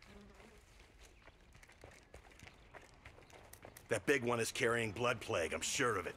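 Footsteps run over soft dirt.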